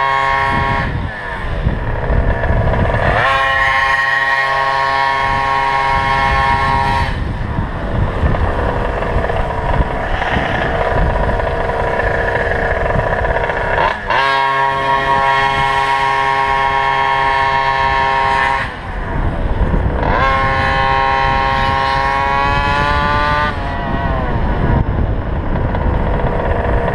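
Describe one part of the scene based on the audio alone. A small engine revs up and down close by, rising in pitch then dropping again and again.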